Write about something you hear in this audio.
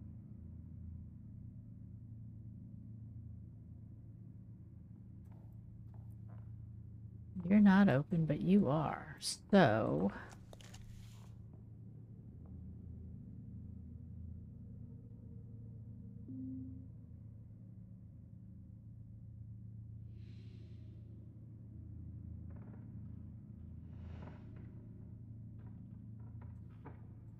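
A low, steady hum drones from a glowing machine.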